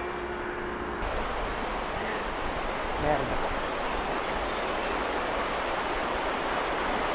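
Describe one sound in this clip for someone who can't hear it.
A river rushes and splashes below.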